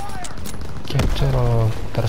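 A rifle bolt clacks during reloading.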